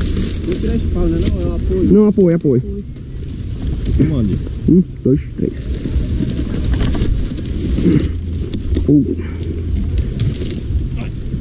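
Grass rustles as a person is moved on a stretcher.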